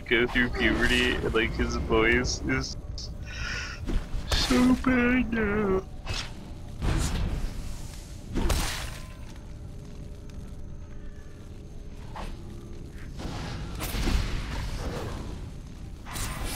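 Magical spells whoosh and burst in a fight.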